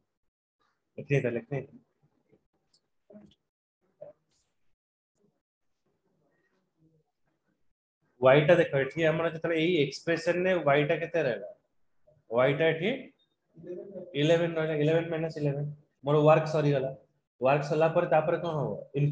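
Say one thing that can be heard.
A man speaks calmly over an online call, explaining.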